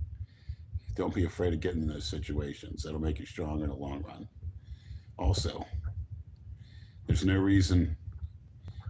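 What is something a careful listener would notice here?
A middle-aged man speaks with animation close to a phone microphone.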